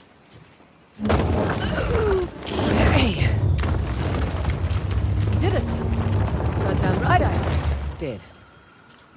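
A heavy stone wheel turns with a loud, rumbling grind.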